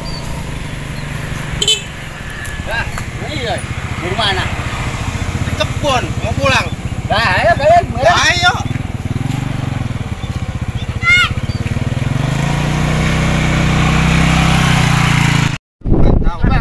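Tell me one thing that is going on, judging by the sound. A motorbike engine hums and idles nearby.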